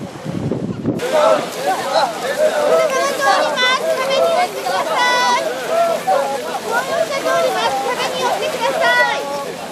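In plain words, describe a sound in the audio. A crowd of men shouts and chants loudly outdoors.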